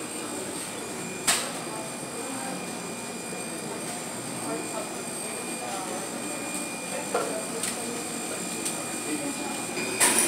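A crowd murmurs indistinctly in a large indoor space.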